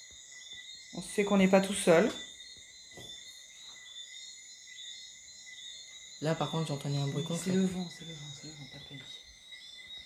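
A young man speaks close by, in short bursts.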